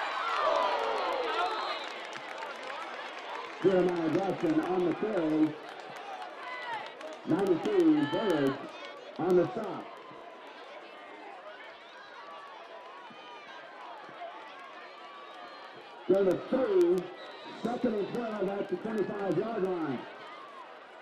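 A crowd of spectators cheers and chatters in an outdoor stadium.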